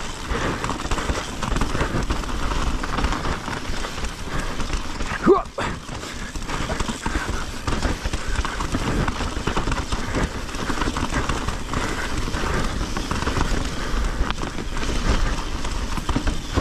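Wind rushes past steadily outdoors.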